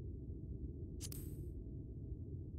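A short electronic click chimes once.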